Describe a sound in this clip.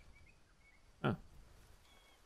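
A bird's nest of dry twigs rustles as it is picked up.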